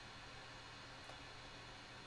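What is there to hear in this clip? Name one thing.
Fingers fiddle with a small part inside a metal computer case, with a faint click.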